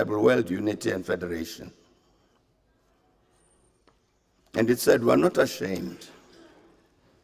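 An elderly man speaks calmly and formally into a microphone, reading out a speech.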